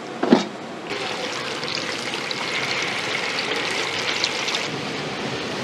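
Batter hisses loudly as it drops into hot oil.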